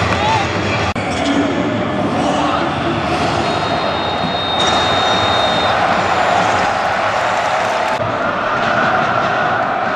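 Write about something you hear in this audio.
A large stadium crowd cheers and chants.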